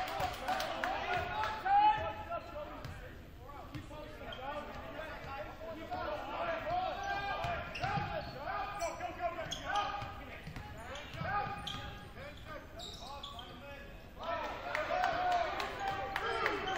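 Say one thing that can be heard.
Young men shout and call out in a large echoing gym.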